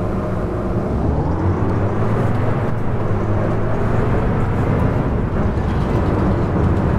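A diesel bus engine revs up as the bus pulls away, rising in pitch.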